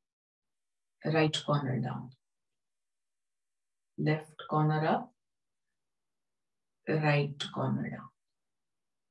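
A woman speaks calmly in short phrases over an online call, with pauses between them.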